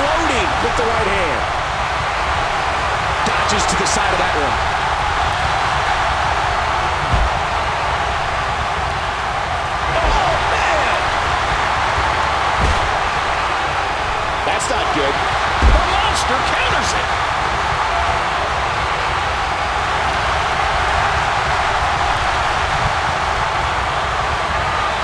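A large crowd roars and cheers steadily.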